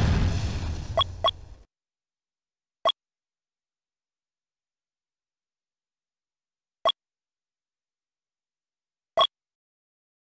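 Short electronic beeps sound a few times, far apart.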